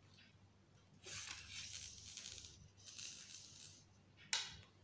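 Paper slides and rustles across a table.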